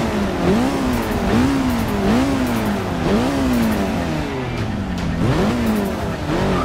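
A car engine revs up and down repeatedly, rising and falling in pitch.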